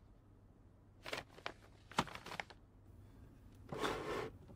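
Papers shuffle in a cardboard box.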